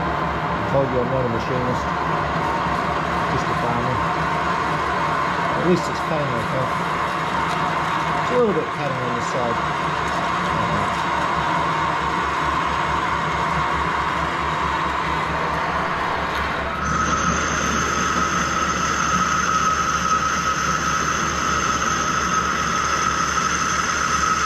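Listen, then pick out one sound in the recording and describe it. A metal lathe hums steadily as it spins.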